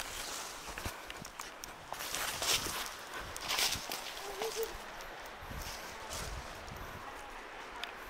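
Leafy plants rustle and brush as someone pushes through them.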